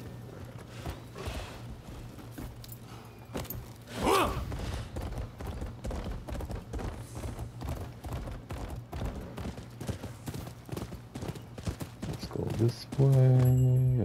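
A horse gallops with hooves clattering quickly on wooden planks.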